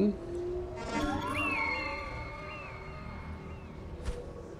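A soft electronic chime rings out.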